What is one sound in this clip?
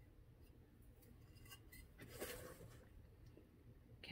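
A wooden strip is set down on a board with a light knock.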